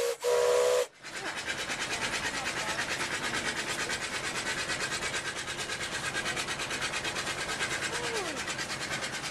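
A steam engine chuffs in a fast, steady rhythm.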